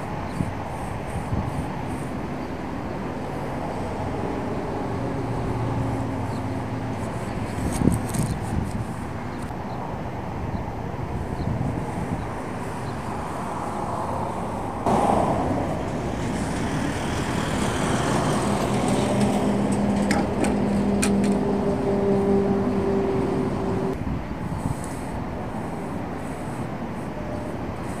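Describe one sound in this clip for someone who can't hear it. A paintbrush scrapes and brushes against a concrete edge.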